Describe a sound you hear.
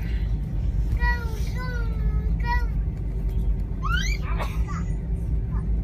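A young child babbles and coos close by.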